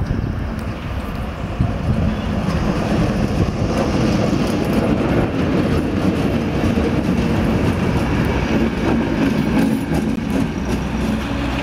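A train rumbles past close by on the rails.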